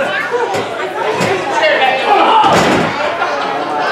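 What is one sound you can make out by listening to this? A body thuds onto a wrestling mat.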